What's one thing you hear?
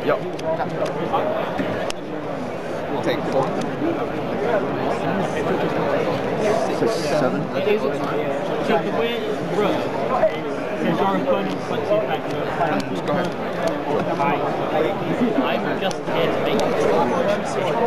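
Playing cards are placed and slid on a table.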